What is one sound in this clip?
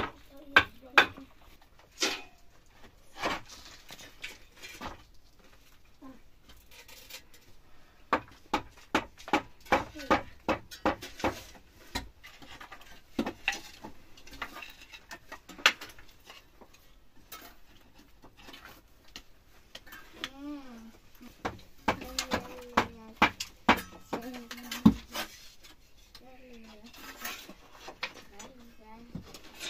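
A hammer knocks sharply on wooden boards overhead.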